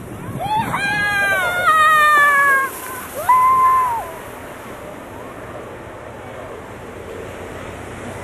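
A plastic sled scrapes and hisses over snow.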